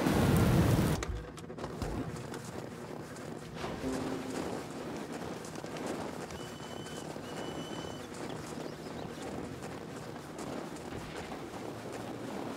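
A snowboard scrapes and hisses over snow.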